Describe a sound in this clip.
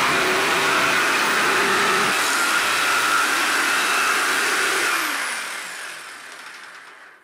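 A jigsaw buzzes loudly as it cuts through wood, then winds down.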